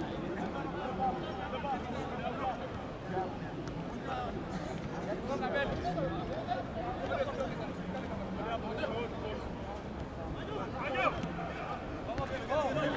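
A stadium crowd shouts and calls out in the open air.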